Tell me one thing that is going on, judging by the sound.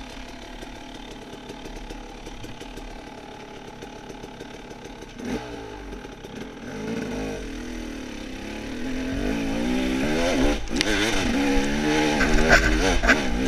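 A dirt bike engine idles and then revs up loudly.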